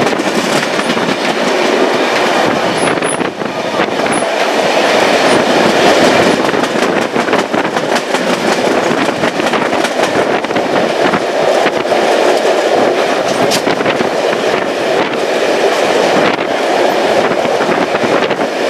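Train wheels rumble and clatter steadily over the rails.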